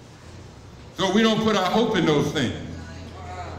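A man's voice booms briefly through loudspeakers.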